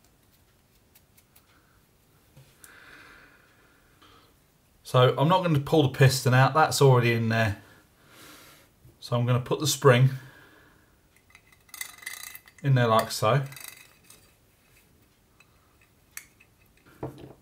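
Metal parts clink and rattle softly as they are handled.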